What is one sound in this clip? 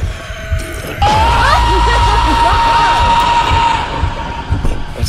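A monster lets out a sudden, loud, shrill screech.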